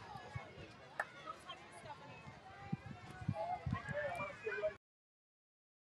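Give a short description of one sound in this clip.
Young girls and adults call out and cheer across an open field at a distance.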